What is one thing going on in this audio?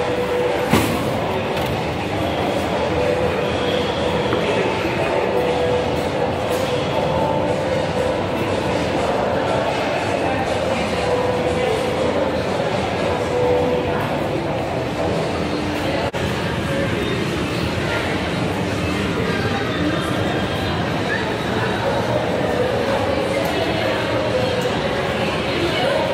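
A murmur of many voices echoes through a large hall.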